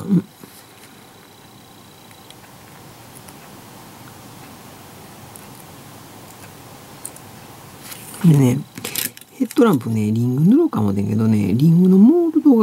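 Small plastic parts click and tap softly as they are handled.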